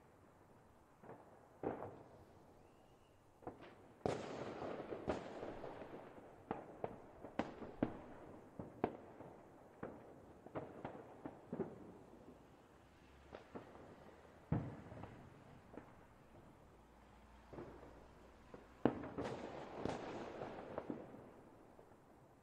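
Fireworks bang and crackle in the distance, with rumbling echoes.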